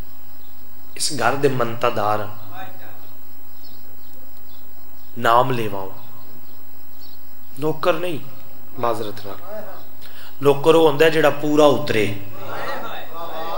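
A young man recites with emotion into a microphone, heard through loudspeakers in an echoing space.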